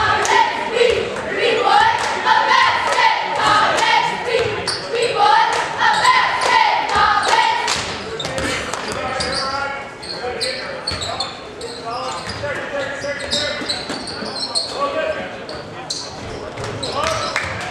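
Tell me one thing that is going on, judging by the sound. Basketball shoes squeak sharply on a gym floor.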